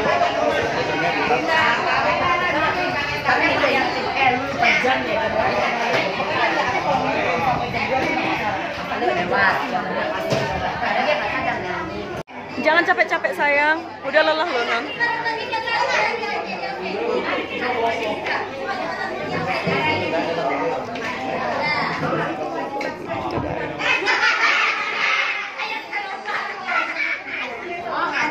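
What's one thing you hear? A crowd of people chatter loudly all around.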